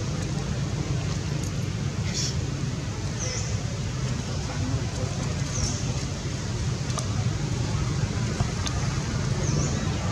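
Monkeys scamper and scuffle over dry leaves on the ground.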